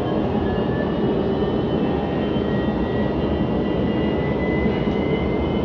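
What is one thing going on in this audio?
Wheels squeal faintly against the rails.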